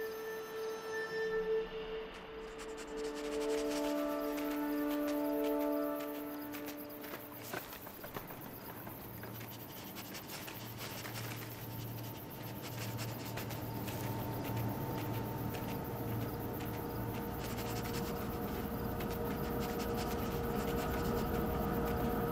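A fox's paws crunch softly through snow.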